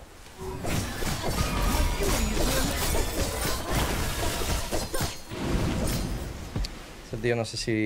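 Swords clash and magic blasts crackle in a hectic fight.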